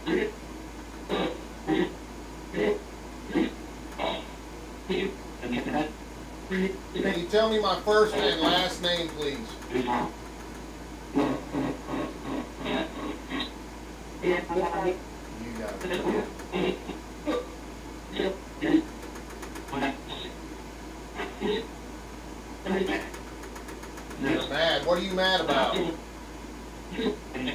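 A man speaks calmly nearby, with short pauses.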